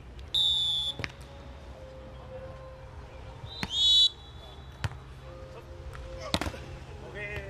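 A volleyball is struck with dull slaps.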